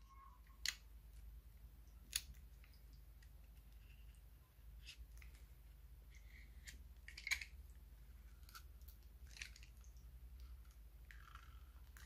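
A utility knife blade scrapes and clicks against a glass jar.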